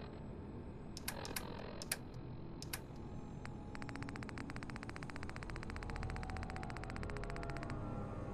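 A menu clicks softly as items are scrolled.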